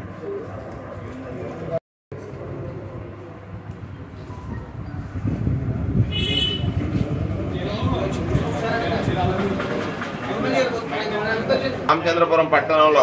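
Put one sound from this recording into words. A group of men murmur and chatter nearby.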